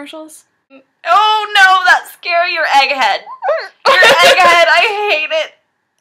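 A young woman speaks loudly and with animation, close to the microphone.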